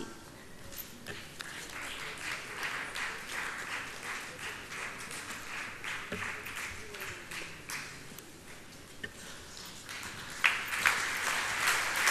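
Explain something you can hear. People applaud steadily.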